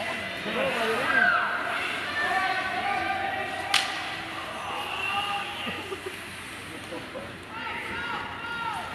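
Skates scrape and swish across the ice in a large echoing rink.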